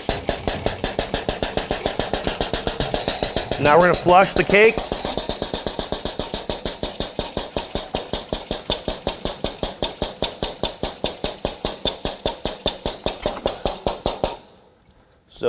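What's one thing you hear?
A pump chugs in fast, even pulses.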